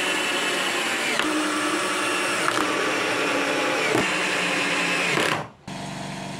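A cordless drill whirs, driving screws into wood.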